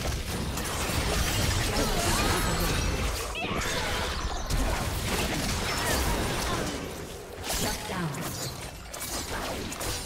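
Spell effects crackle and blast in a game fight.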